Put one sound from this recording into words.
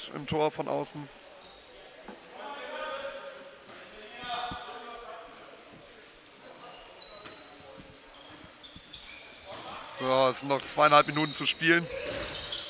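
Sneakers squeak on a hard floor in an echoing hall.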